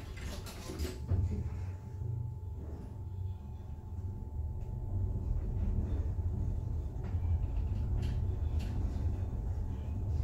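An elevator hums low and steadily as it rises.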